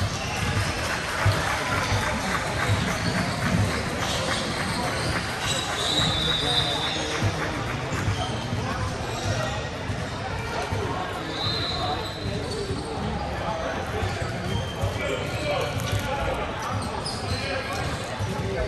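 A group of children and adults chatter at a distance in a large echoing hall.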